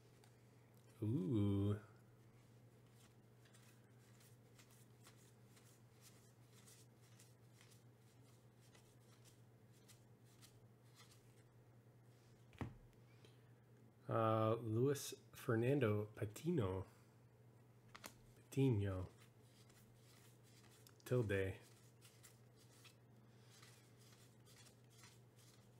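Trading cards slide and flick softly between fingers.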